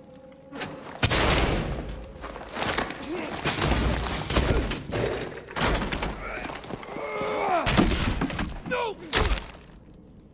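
A man grunts and struggles in a close scuffle.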